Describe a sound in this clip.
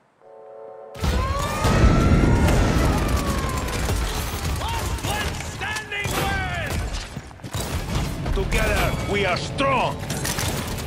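A gun fires rapid shots with loud bursts.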